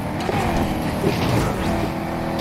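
A car crashes with a loud metallic smash.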